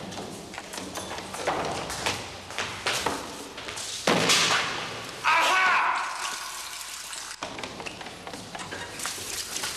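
Footsteps hurry on a hard floor.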